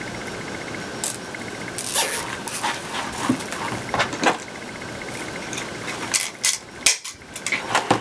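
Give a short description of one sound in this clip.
Plastic mesh ribbon rustles and crinkles.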